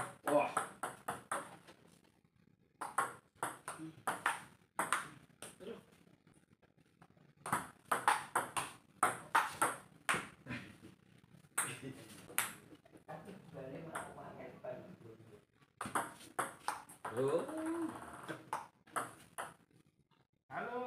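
A ping-pong ball clicks rapidly back and forth off paddles and a table.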